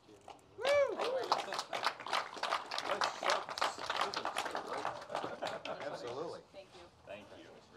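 A crowd claps their hands in applause.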